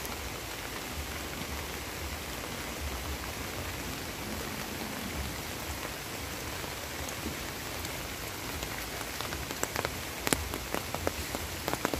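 A muddy stream rushes and gurgles.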